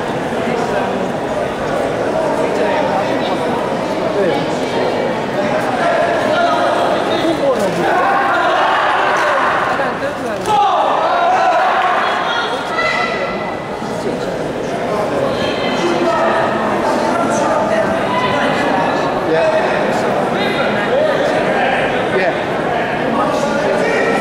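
A crowd murmurs and chatters throughout a large echoing hall.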